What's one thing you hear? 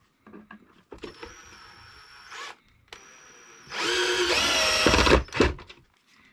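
A cordless drill whirs as it drives screws.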